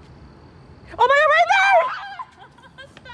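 A young woman squeals and laughs loudly close by.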